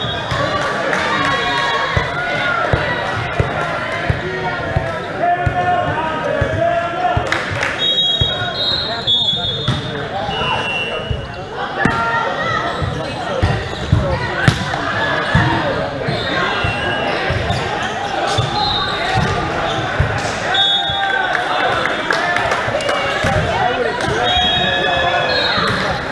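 Young men call out and talk loudly in a large echoing hall.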